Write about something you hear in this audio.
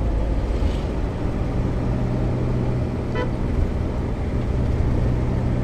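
Road noise rushes past outside the moving vehicle.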